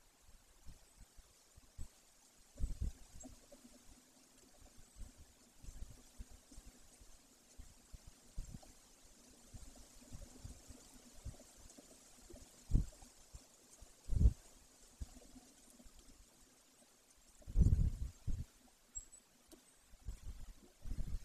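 Wind rustles the leaves of nearby trees.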